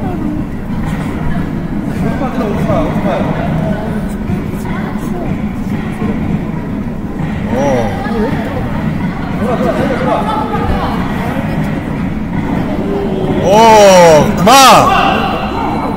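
Bare feet thump and shuffle on a mat.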